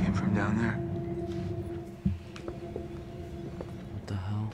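A young man answers quietly.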